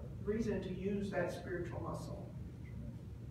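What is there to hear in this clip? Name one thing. A woman speaks into a microphone in an echoing room.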